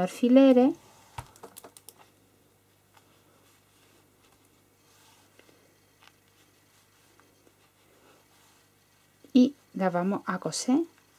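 Fabric rustles softly as it is folded and pinned.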